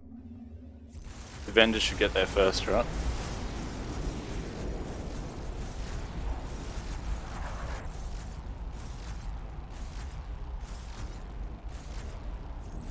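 Explosions rumble low and steady.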